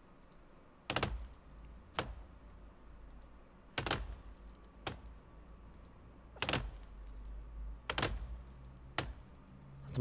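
An axe chops into wood with sharp knocks.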